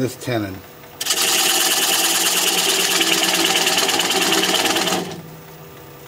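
A tool grinds loudly against spinning wood.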